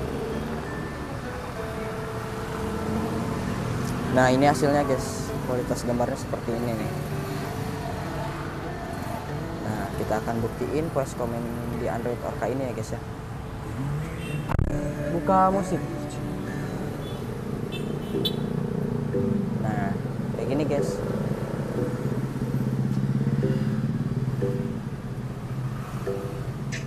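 Music plays from car speakers.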